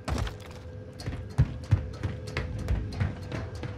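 Footsteps knock on ladder rungs in a quick, uneven rhythm.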